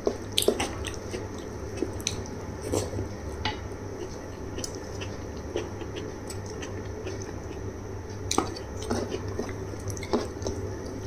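Fingers squish and mix soft rice on a metal plate.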